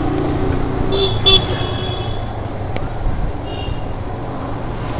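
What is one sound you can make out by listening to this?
Horns beep nearby.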